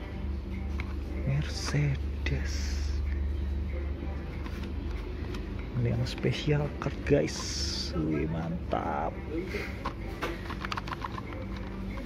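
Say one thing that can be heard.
A plastic blister package crinkles and taps as it is handled close by.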